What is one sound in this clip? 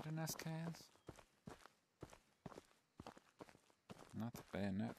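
Footsteps swish through grass at a steady walking pace.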